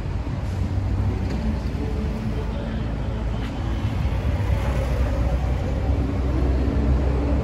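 City traffic rumbles steadily on a busy street.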